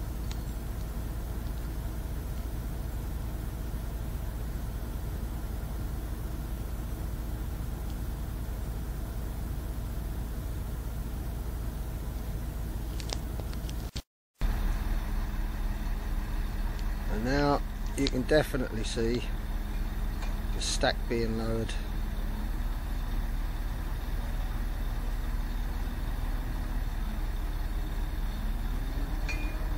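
A heavy engine rumbles steadily nearby.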